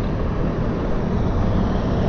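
A lorry's engine rumbles nearby.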